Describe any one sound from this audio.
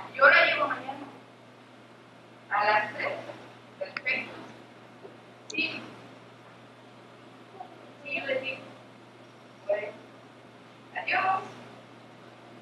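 A young woman speaks in short, loud lines from a distance, with a slight echo of a hall.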